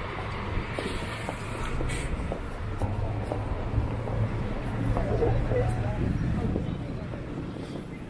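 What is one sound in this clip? City traffic rumbles past on a street.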